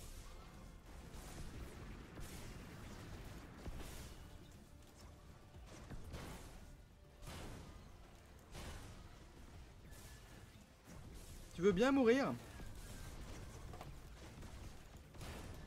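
Heavy robot legs stomp and clank.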